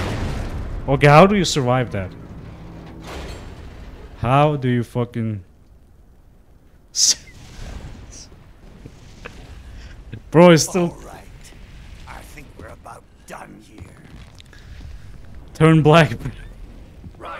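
A young man talks and laughs into a close microphone.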